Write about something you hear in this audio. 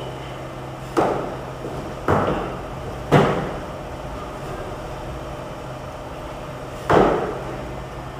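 A man's feet thud on the floor as he drops from a bar.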